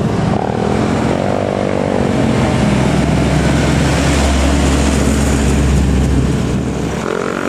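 A truck engine rumbles loudly as it drives past.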